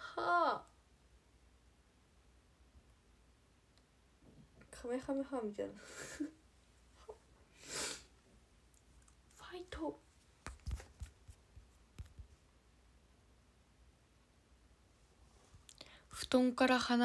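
A young woman talks up close into a microphone, in bursts with pauses.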